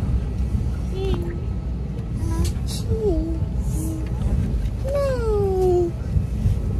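A young child speaks in short, high, sing-song bursts close by.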